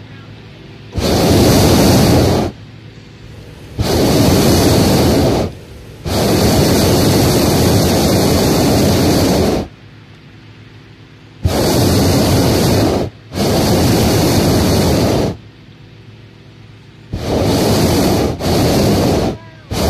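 A hot air balloon burner roars loudly overhead in long bursts.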